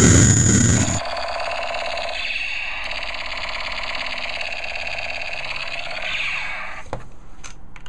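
A circuit-bent toy gun makes loud, warbling electronic noises.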